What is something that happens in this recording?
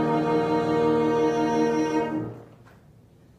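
A cello and a bassoon play a sustained chord together, then stop.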